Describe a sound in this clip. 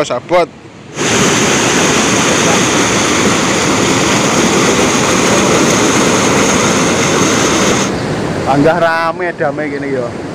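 Water rushes and roars loudly through a spillway.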